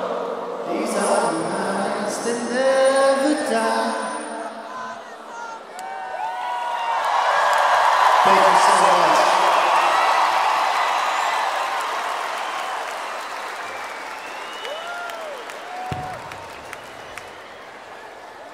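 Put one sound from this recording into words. A huge crowd cheers and roars in a vast open arena, swelling and then slowly fading.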